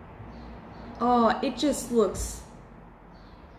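A young woman speaks with animation close to the microphone.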